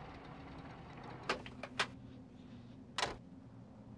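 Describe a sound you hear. A van door opens and shuts with a thud.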